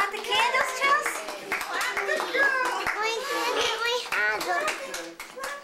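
Children and adults sing together close by.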